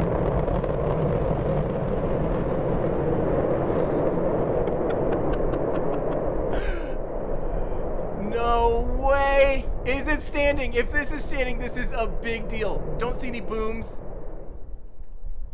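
A rocket engine roars with a deep, rumbling blast that fades out.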